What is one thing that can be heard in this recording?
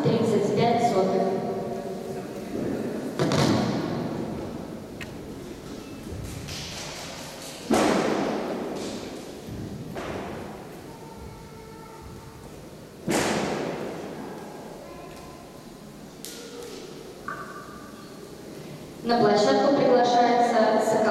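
Music plays from a loudspeaker in a large echoing hall.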